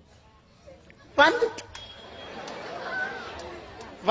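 A man laughs into a microphone.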